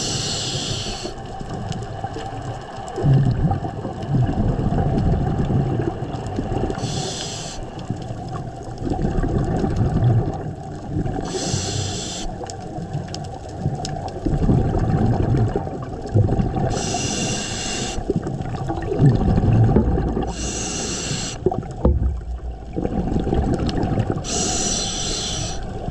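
A diver breathes out underwater in regular bursts of rushing, bubbling air.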